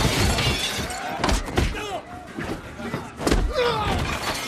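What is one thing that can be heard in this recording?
Blows land with hard thuds in a fight.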